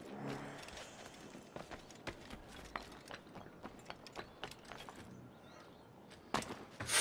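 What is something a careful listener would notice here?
Quick footsteps patter across roof tiles.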